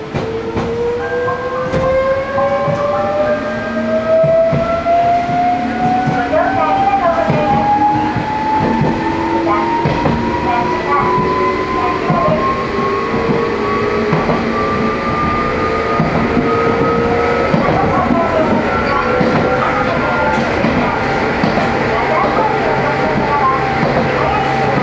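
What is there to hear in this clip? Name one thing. A train's electric motor whines, rising steadily in pitch as it speeds up.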